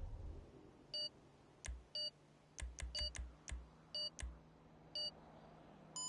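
Short menu beeps click as options are selected.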